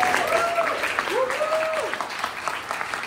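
Women in a crowd whoop and cheer.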